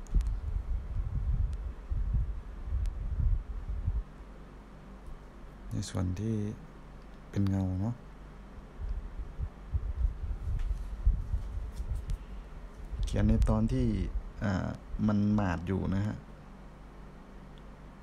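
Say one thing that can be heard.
A brush dabs and strokes softly on paper.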